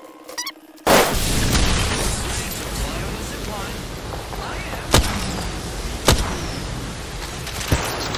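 Fires crackle and roar nearby.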